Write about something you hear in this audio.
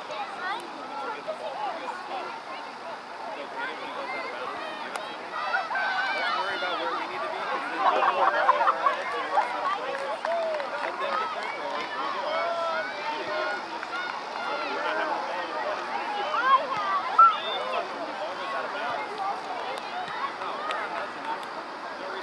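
Spectators on the sidelines shout and cheer from a distance outdoors.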